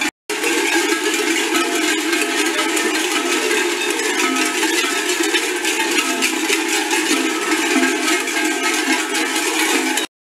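Many large bells clang and jangle steadily.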